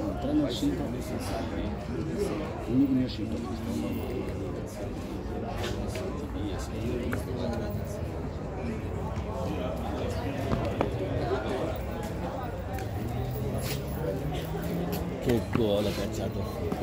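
Men talk casually close by, outdoors.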